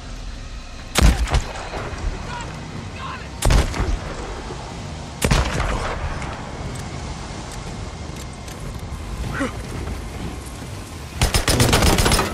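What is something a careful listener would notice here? A rifle fires sharp, loud shots several times.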